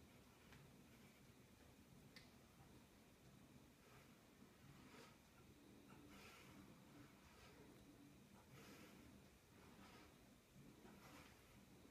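A man breathes hard in short puffs.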